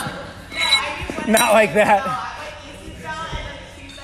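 A metal weight plate scrapes and clanks onto a barbell.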